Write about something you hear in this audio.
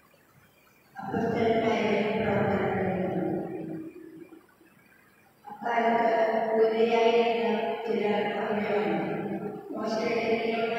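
A woman sings through a microphone.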